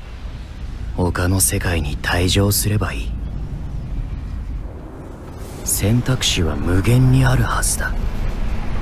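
A young man narrates calmly into a microphone.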